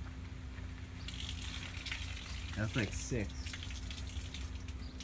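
Soda fizzes and sprays out of a bottle with a rushing hiss.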